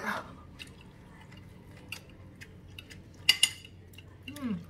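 A woman slurps noodles loudly.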